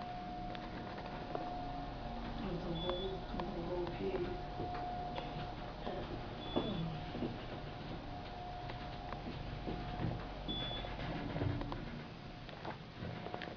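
An elevator hums steadily as it travels.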